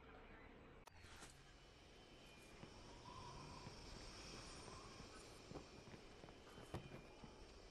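Footsteps scuff on hard ground.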